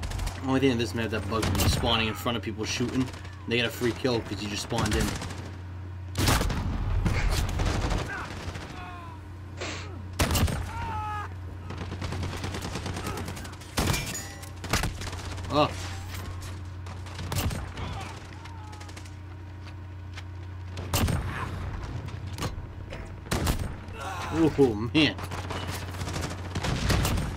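Guns fire in sharp, loud shots.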